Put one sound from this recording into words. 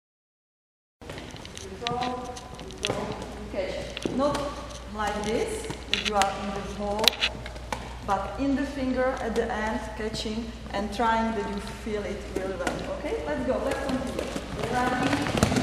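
A woman explains calmly and clearly in a large echoing hall.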